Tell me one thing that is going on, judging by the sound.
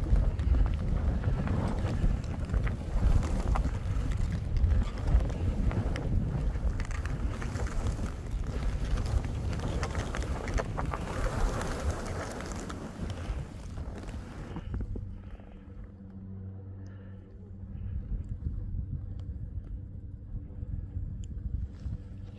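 Wind rushes and buffets loudly against the microphone.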